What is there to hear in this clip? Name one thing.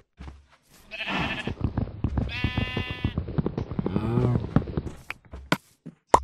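Dull thuds repeat as wood is struck with a fist.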